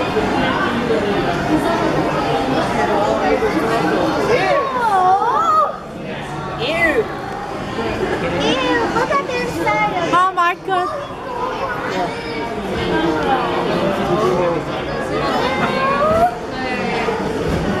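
A crowd of adults and children chatters in a large echoing hall.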